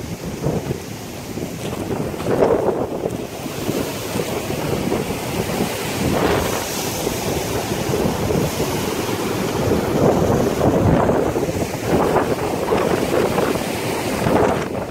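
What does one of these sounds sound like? Rough surf crashes and roars onto the shore.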